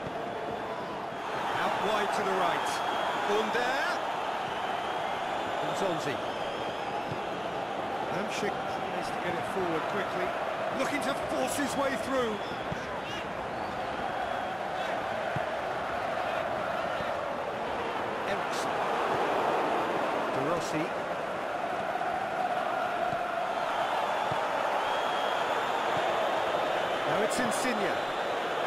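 A large crowd cheers and murmurs steadily in a big stadium.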